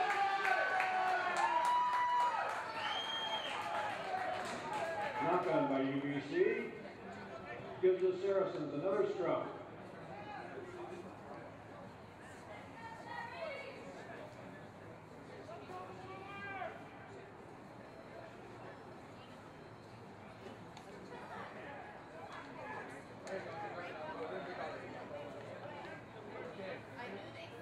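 Rugby players shout and call out to each other on an open field.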